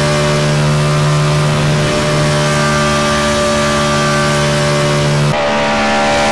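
A race car engine roars loudly from inside the cabin.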